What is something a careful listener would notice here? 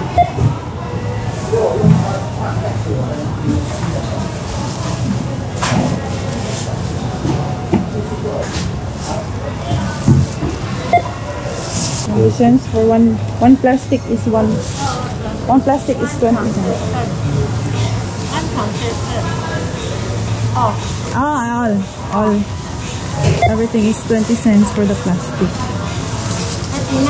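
A store hums with a steady background murmur.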